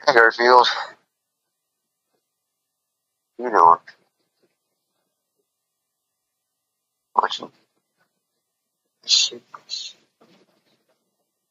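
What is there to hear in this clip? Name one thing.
A cat meows several times.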